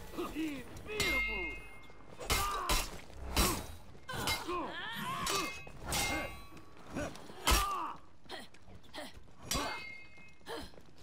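Blades clash and clang sharply again and again.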